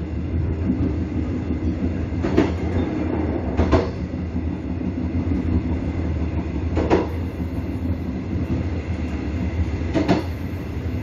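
A passenger train rumbles along the track.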